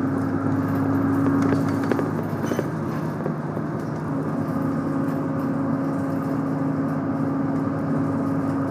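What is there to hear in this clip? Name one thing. A train rumbles and hums steadily as it runs along the tracks.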